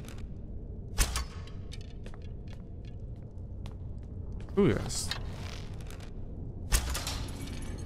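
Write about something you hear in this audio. An arrow is loosed with a sharp twang.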